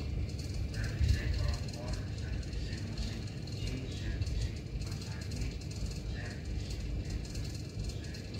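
Fingertips tap and swipe softly on a touchscreen.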